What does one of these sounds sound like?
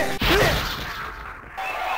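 A heavy punch lands with a loud, booming thud.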